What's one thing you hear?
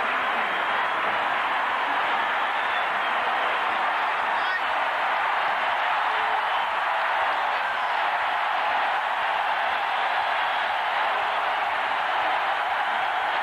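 A huge stadium crowd roars and cheers steadily, outdoors.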